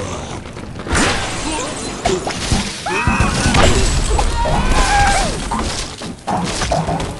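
Wooden blocks crash and clatter as a tower collapses.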